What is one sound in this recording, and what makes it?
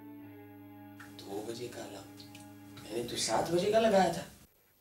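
A man groans in distress close by.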